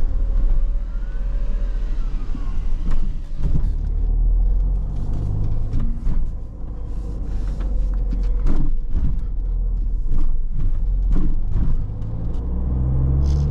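A small car engine hums steadily and rises and falls as the car drives.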